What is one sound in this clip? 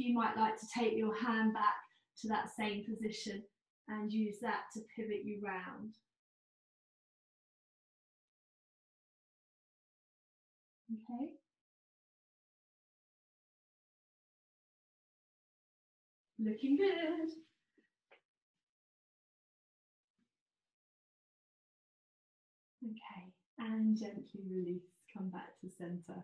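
A woman speaks calmly and clearly, close by, with pauses.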